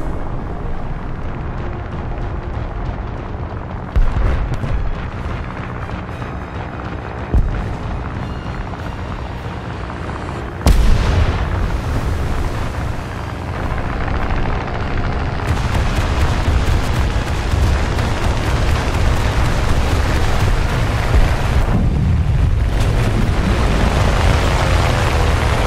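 Waves slosh and rush steadily around a boat.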